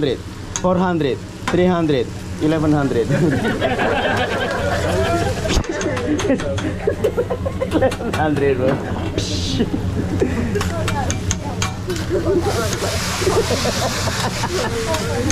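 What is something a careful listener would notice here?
A metal spatula scrapes and clacks on a hot griddle.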